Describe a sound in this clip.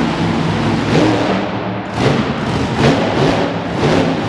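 A monster truck lands with heavy thuds.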